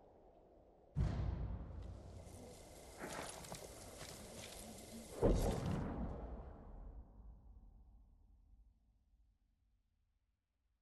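A deep booming whoosh sounds and slowly fades.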